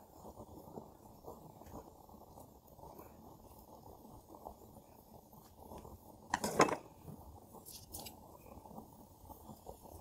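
Meat sizzles on a small grill.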